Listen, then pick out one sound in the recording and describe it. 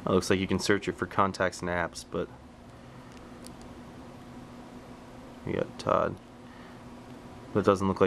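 Buttons on a phone click softly as they are pressed.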